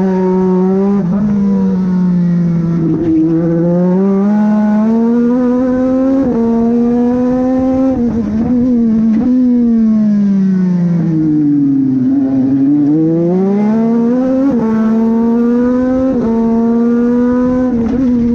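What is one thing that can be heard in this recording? A racing car engine roars close by, its pitch rising through the gears and dropping as it slows for corners.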